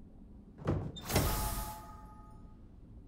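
A wooden chest bursts open with a whoosh.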